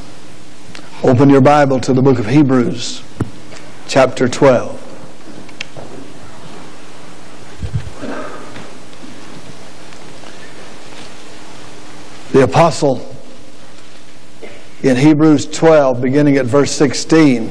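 A middle-aged man speaks slowly and deliberately through a microphone, with long pauses.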